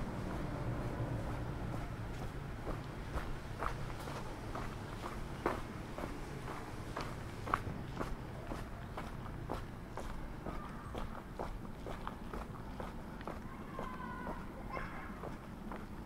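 Footsteps crunch on a gravel path at a steady walking pace.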